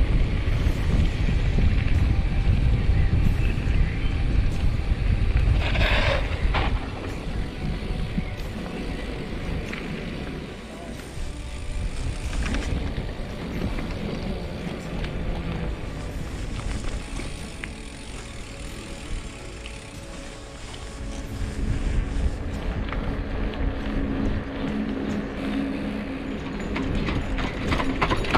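Wind rumbles steadily over a moving microphone outdoors.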